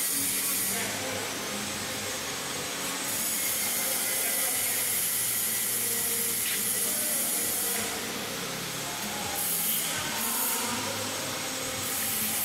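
An electric motor hums steadily nearby.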